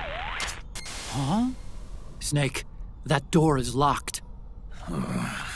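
A young man speaks calmly over a radio.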